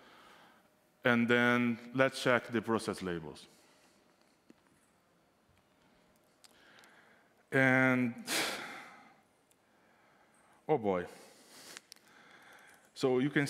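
A man speaks into a microphone in a hall, pausing between phrases.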